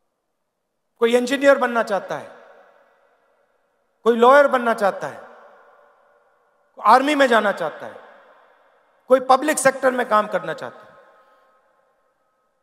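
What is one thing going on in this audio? A man speaks forcefully into a microphone over loudspeakers, in short phrases that echo.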